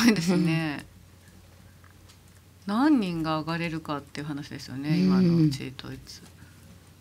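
A young woman speaks with animation into a microphone.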